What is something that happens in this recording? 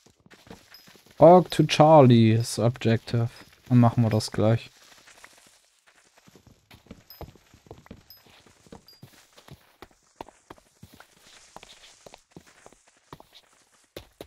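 Wooden blocks crunch and break in quick, repeated knocks.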